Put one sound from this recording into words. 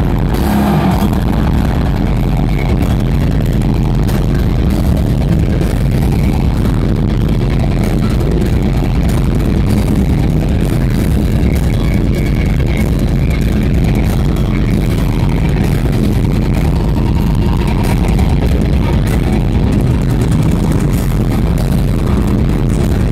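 Loud distorted electric guitars play through a large concert sound system.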